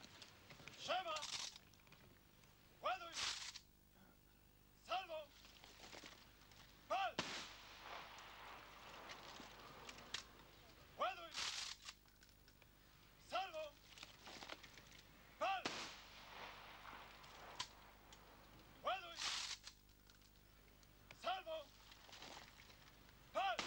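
Rifles clatter and thud as soldiers drill in step.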